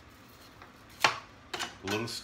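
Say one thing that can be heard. A knife clatters down onto a cutting board.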